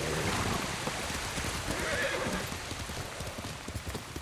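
A horse's hooves thud on a dirt path at a quick pace.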